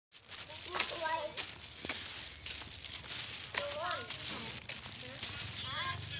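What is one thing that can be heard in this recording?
A child's shoes patter on a paved road.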